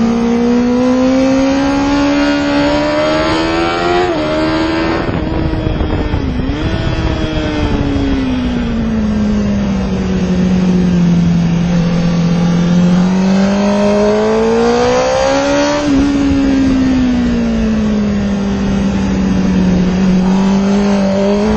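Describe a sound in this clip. Wind rushes hard past the rider.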